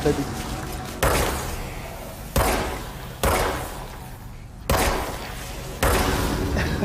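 Gunshots ring out with a booming echo.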